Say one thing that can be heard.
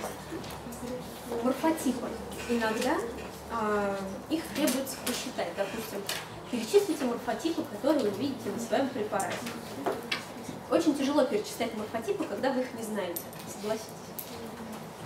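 A woman lectures, speaking calmly.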